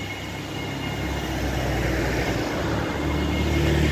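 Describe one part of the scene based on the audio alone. An SUV drives past close by.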